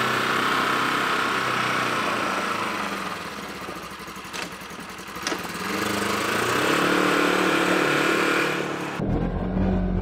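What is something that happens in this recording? A small off-road vehicle engine drives away and fades.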